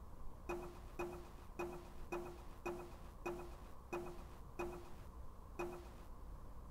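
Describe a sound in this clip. Short pitched menu blips sound quickly one after another as a cursor moves through a list.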